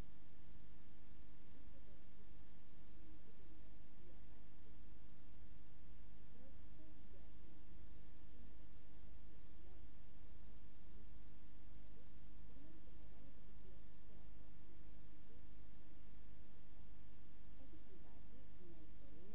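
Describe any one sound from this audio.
A woman reads out the news calmly into a microphone.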